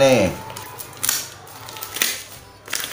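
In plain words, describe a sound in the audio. Paper and plastic tear as a parcel is opened.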